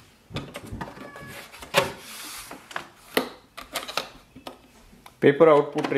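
Paper rustles and slides into a printer tray.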